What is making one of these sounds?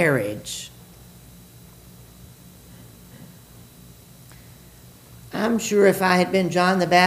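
An elderly man speaks into a microphone, heard through loudspeakers in an echoing hall.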